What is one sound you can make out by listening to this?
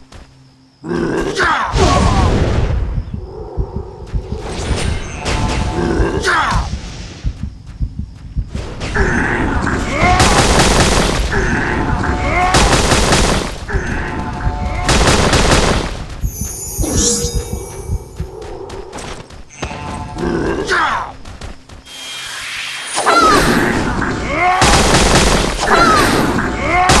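Weapons clash and strike in quick blows.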